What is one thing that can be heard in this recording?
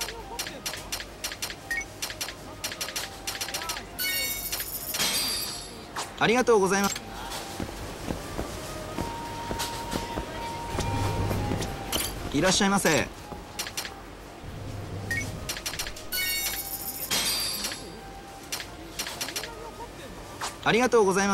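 Short electronic beeps click rapidly.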